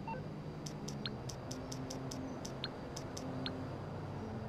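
A phone menu clicks quickly several times.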